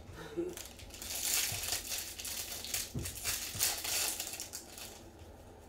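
A foil pack crinkles and tears open.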